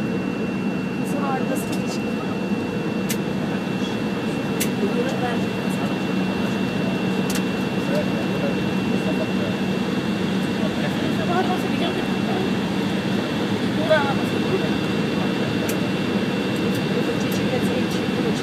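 Jet engines hum and whine steadily from inside an aircraft cabin.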